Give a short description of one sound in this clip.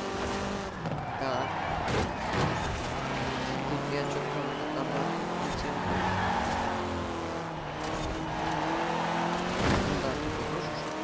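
Tyres screech on asphalt through the bends.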